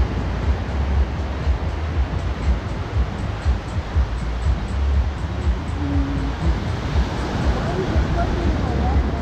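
Small waves wash steadily onto a sandy shore.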